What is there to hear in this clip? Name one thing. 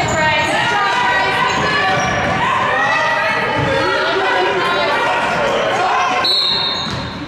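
Sneakers squeak sharply on a wooden floor in an echoing gym.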